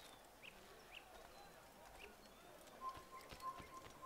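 Footsteps run across stone ground.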